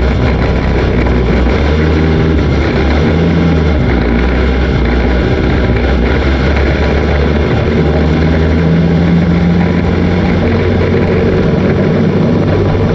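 A dirt track race car engine roars under throttle, heard from inside the cockpit.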